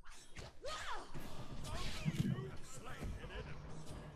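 Weapons clash and magic blasts crackle in a fight.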